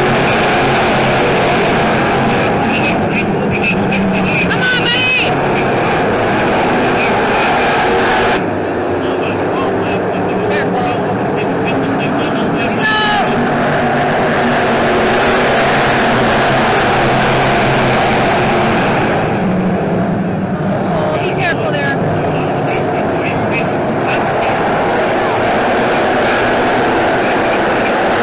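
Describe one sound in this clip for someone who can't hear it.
Many race car engines roar loudly.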